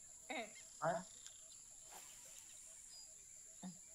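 A fishing reel clicks softly as line is wound in.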